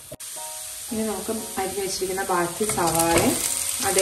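Sliced onions drop into hot oil with a loud hiss.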